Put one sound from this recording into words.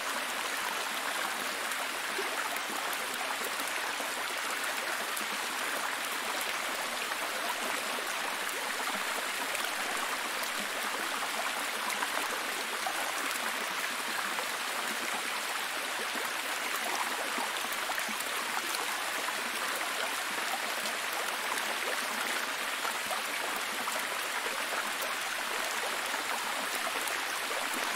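A waterfall splashes steadily over rocks.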